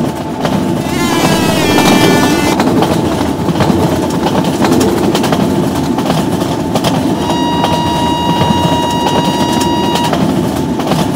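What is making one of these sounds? A train horn sounds loudly twice.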